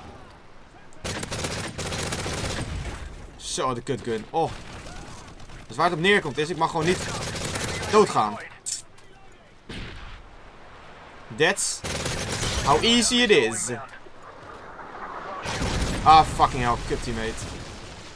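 Gunfire from a video game crackles in bursts.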